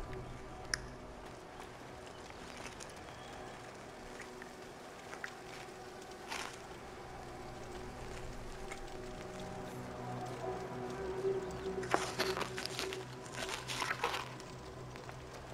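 Soft footsteps patter on stone.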